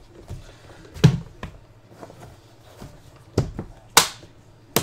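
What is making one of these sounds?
A plastic case snaps and clicks shut.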